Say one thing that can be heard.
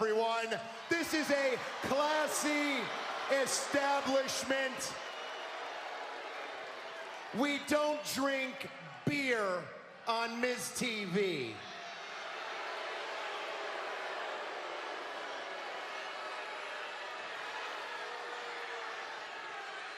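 A large crowd murmurs and cheers throughout.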